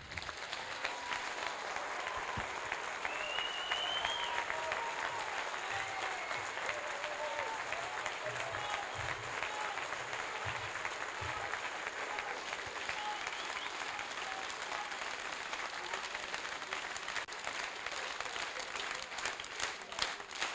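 A large crowd applauds loudly in an echoing hall.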